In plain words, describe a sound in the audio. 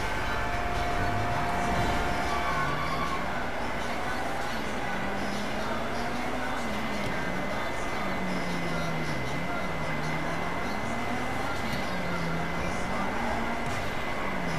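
A car engine revs up and down as a car speeds along.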